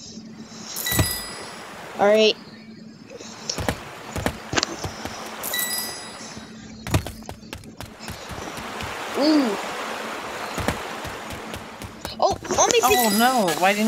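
Short bright chimes ring out as coins are collected.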